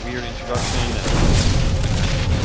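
An explosion bursts with a roar.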